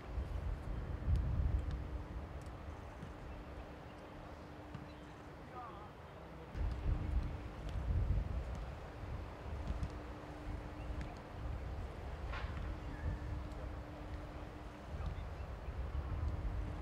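A football is kicked and headed back and forth outdoors.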